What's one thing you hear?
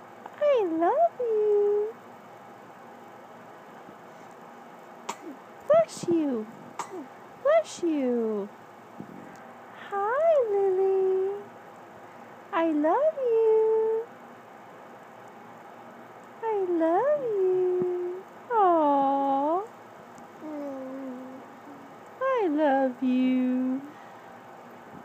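A baby coos and babbles close by in short, sing-song bursts.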